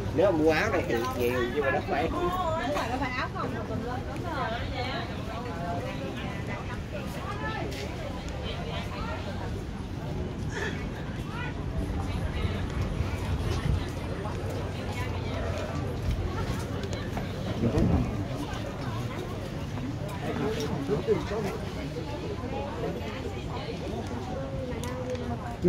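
A crowd of shoppers chatters all around.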